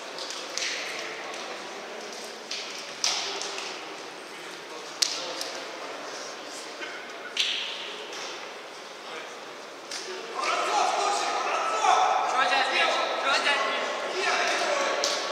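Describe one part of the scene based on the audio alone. Men talk and call out to each other in a large echoing hall.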